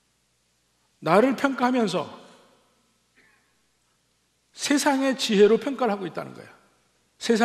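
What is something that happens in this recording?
A middle-aged man speaks calmly through a microphone in a reverberant hall.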